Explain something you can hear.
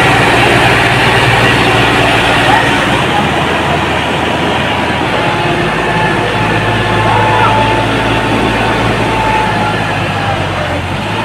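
Tractor engines rumble loudly close by.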